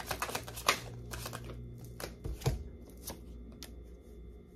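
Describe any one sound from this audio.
Playing cards shuffle and flick between a man's hands.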